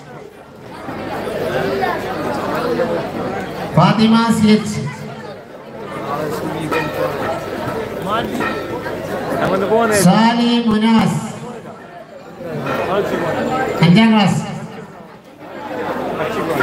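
A man speaks loudly and with animation through a loudspeaker, breaking into drawn-out calls.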